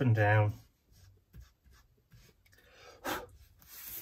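An ink blending tool dabs and scrubs softly on paper.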